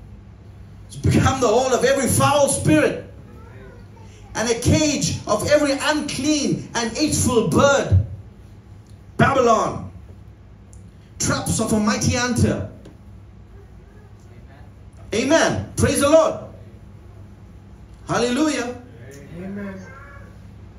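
A man preaches forcefully into a microphone, in bursts with pauses.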